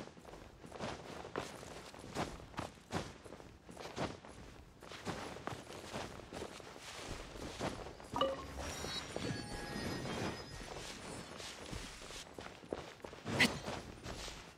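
Quick footsteps crunch on snow and then on grass.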